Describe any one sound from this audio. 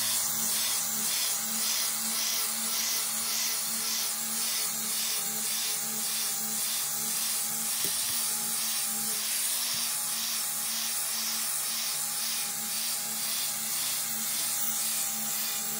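An angle grinder with a flap disc whines as it grinds across a steel blade.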